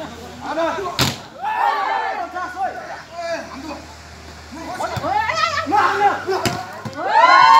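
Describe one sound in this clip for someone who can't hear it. A volleyball is struck hard with a hand.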